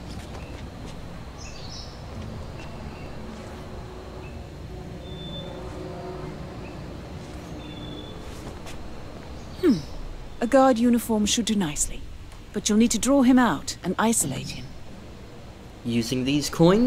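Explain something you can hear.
Soft footsteps shuffle slowly on pavement.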